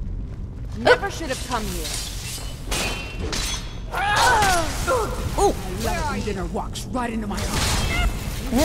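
Blades clash and strike in a close fight.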